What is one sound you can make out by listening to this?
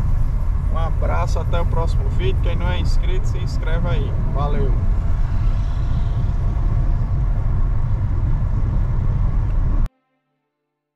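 A car rumbles steadily along a paved road.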